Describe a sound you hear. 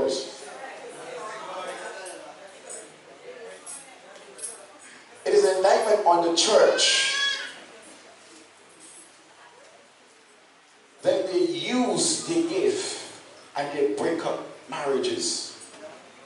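A man preaches with animation through a microphone and loudspeakers, in a large echoing room.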